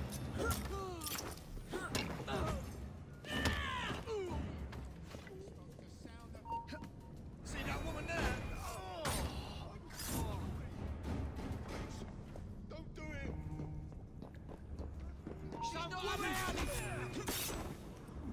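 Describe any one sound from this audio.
Blows land with heavy thuds during a fight.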